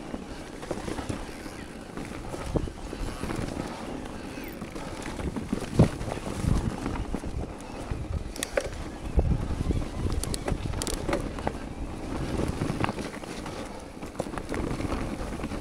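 A bicycle's frame and chain rattle over bumps.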